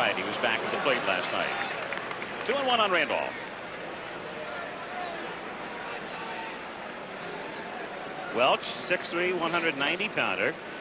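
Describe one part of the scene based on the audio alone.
A crowd murmurs in the stands of a large stadium.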